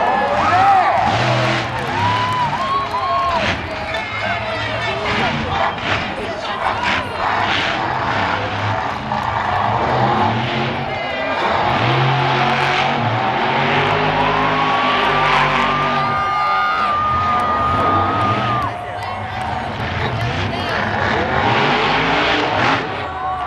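A monster truck engine roars loudly, revving up and down.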